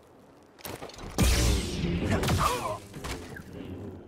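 A lightsaber swings with a humming whoosh.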